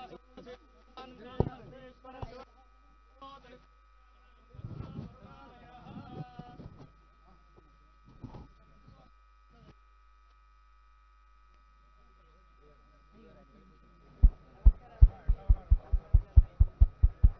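A crowd of men talk and call out nearby.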